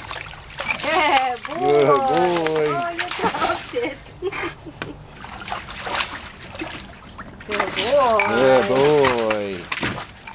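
Dogs splash and paddle in shallow water.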